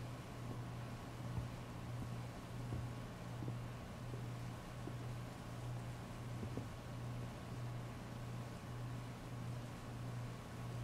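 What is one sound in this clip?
Heavy rain pours steadily and splashes on wet pavement.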